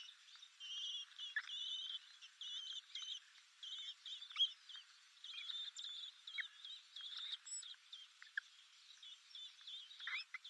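Blackbird nestlings beg with thin, high cheeping calls.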